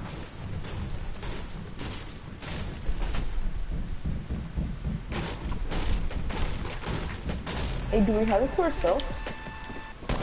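Footsteps thud quickly on hard floor.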